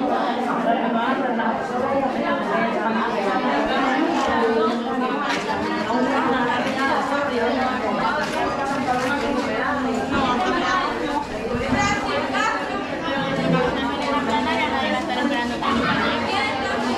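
A crowd of women and girls chatter loudly all around in a busy room.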